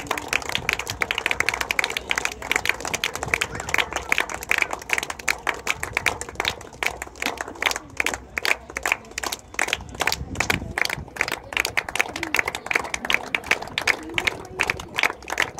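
A small crowd claps steadily outdoors.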